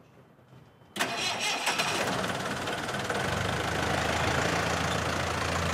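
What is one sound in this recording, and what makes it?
A bus engine starts and rumbles steadily.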